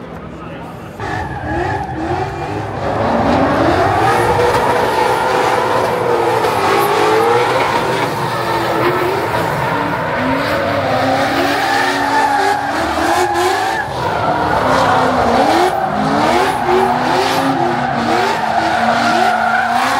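Car engines roar and rev hard, rising and falling in pitch.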